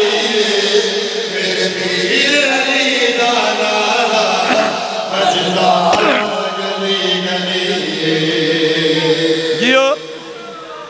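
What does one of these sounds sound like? A man recites with passion through a loud microphone and loudspeakers.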